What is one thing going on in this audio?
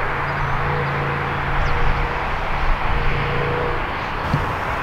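Diesel locomotives rumble steadily as they roll along the track.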